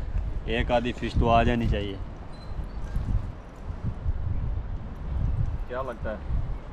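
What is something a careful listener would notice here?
A young man speaks casually close by.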